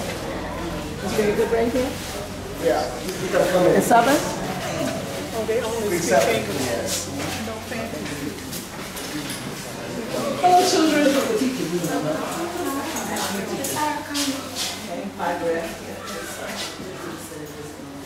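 A man talks with animation to a small group.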